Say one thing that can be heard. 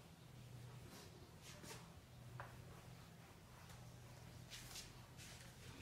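A board eraser rubs softly across a whiteboard.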